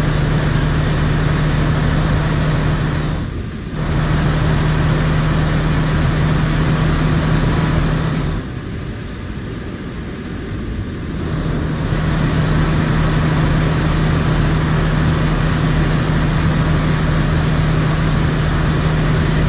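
A truck engine drones steadily, dropping away briefly twice as it changes gear.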